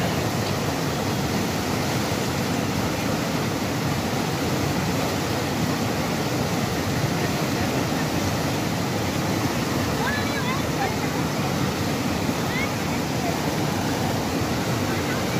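A fast mountain river roars and rushes over rocks.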